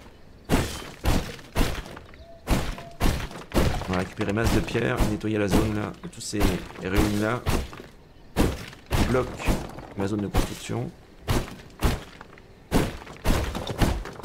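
Sword blows land with sharp, quick impacts.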